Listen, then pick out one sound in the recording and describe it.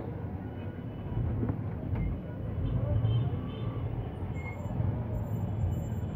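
A motorbike engine idles and revs nearby.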